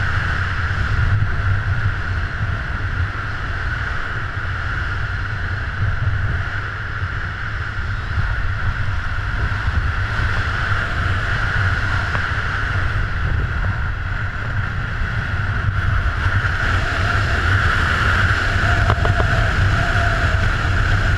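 Wind roars and buffets steadily.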